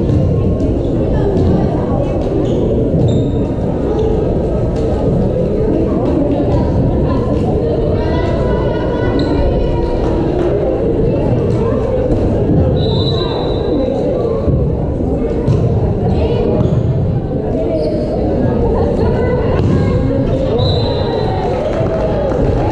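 A crowd chatters throughout a large echoing gym.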